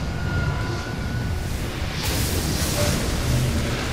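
A magical energy surge hums and crackles.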